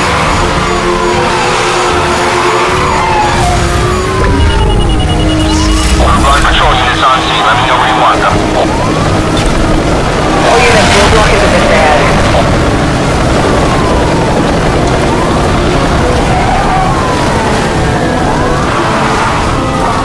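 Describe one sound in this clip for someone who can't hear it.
A police siren wails continuously.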